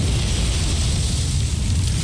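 Energy blasts crackle and burst at close range.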